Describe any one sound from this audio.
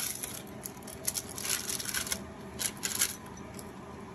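Grated cheese rustles and patters onto potatoes.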